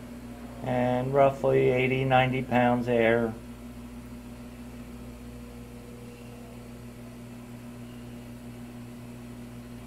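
A solenoid valve hums steadily.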